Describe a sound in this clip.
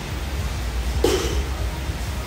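A weight clanks sharply on a metal rack.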